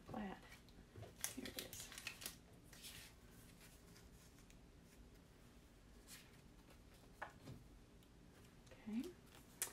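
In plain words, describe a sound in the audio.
Small plastic pieces click and tap on a table.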